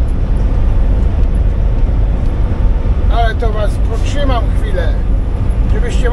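An engine rumbles steadily inside a vehicle cab while driving.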